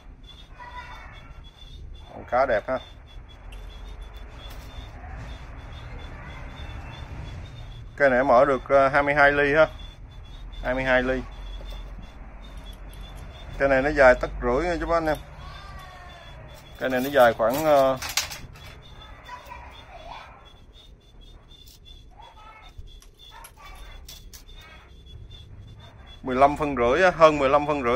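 Metal tools clink and rattle as hands handle them.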